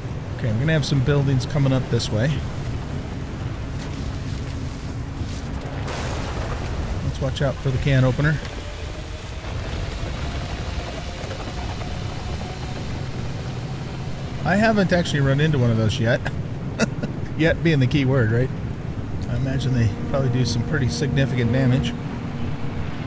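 An older man talks through a headset microphone.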